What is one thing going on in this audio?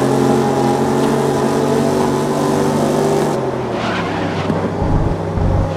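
A race car engine roars at high revs, then drops in pitch.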